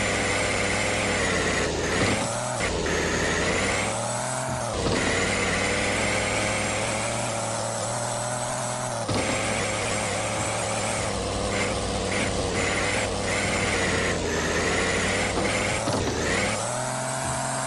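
A truck engine revs and roars, rising and falling in pitch.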